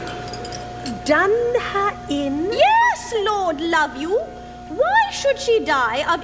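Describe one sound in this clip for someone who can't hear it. A woman sings from a stage, heard from a distance in a large hall.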